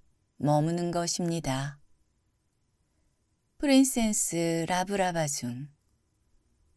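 A man reads aloud calmly, close to a microphone.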